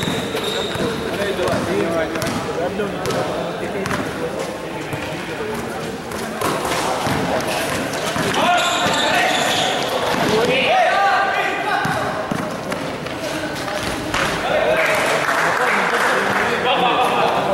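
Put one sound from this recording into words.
Young men shout and call out to each other across an echoing court.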